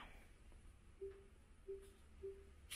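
A television gives short soft beeps.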